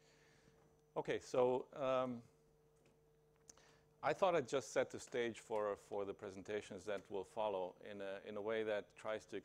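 A middle-aged man speaks calmly into a clip-on microphone.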